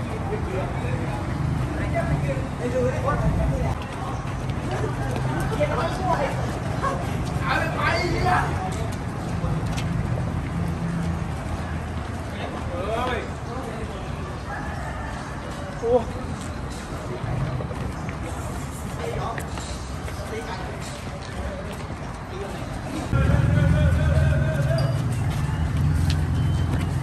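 Young men call out and talk among themselves outdoors.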